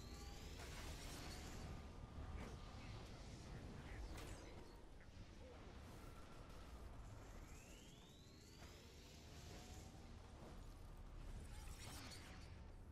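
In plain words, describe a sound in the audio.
Game blasts and impacts hit in quick succession.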